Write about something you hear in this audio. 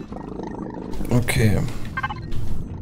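A man speaks into a microphone, close by.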